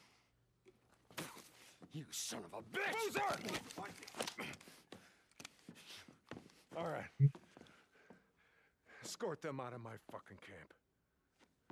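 A man speaks tensely and threateningly.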